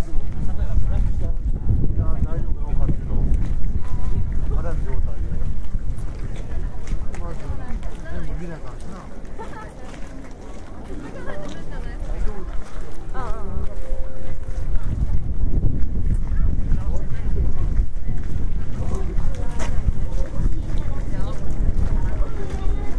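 A crowd of people talk quietly nearby.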